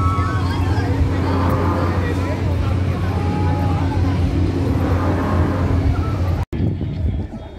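A swinging ship ride rumbles as it swings back and forth.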